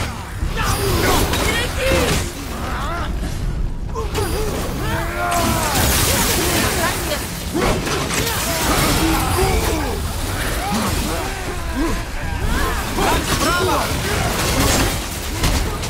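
An axe strikes enemies with heavy thuds.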